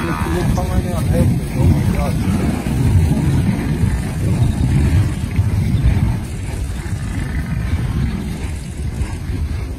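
A herd of buffalo thunders across the ground.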